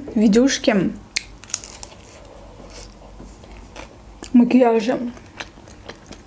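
A young woman chews food with soft crunching.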